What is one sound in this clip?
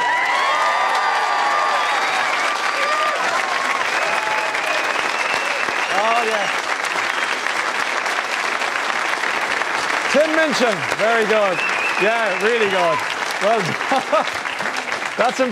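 A large audience claps and cheers loudly.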